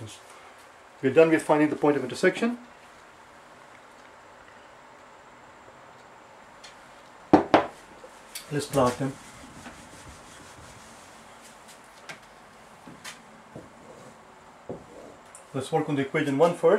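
An older man speaks calmly and clearly, close by.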